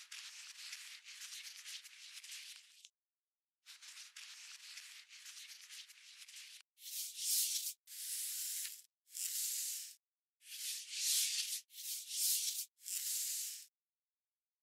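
A cotton swab scrapes and scrubs inside a small plastic case.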